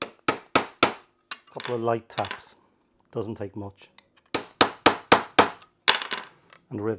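A hammer taps a metal punch with sharp, ringing knocks.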